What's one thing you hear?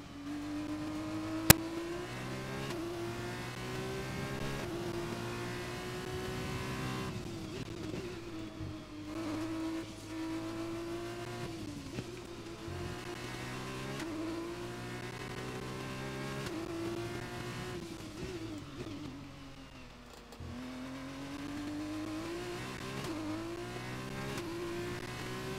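A racing car engine whines loudly, rising through the gears and dropping as it brakes for corners.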